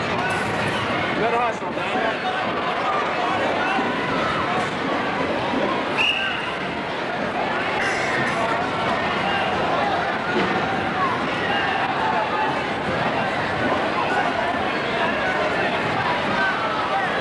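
A crowd of adults and children chatters throughout a large echoing gym.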